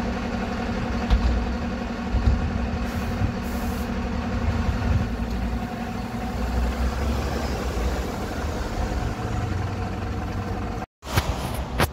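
A bus engine idles close by with a steady hum.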